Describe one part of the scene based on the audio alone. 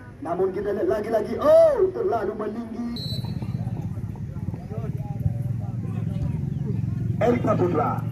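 Men among a crowd of spectators shout and call out loudly outdoors.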